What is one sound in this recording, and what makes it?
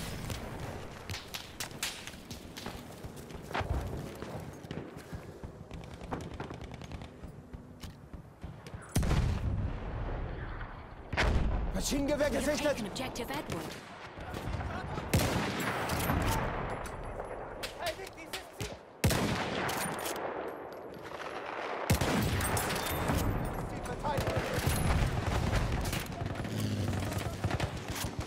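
Distant gunfire crackles throughout.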